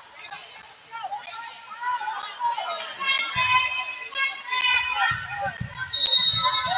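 Players call out to each other across the court.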